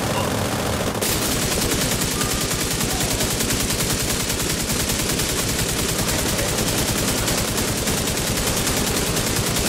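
An automatic rifle fires in rapid, continuous bursts.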